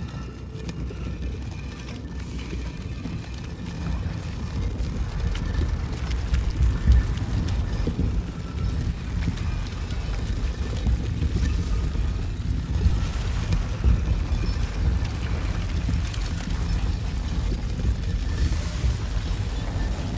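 Soft footsteps patter on a stone floor.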